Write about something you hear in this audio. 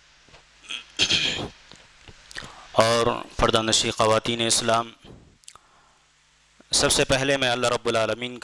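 A man speaks calmly into a close microphone, in short phrases.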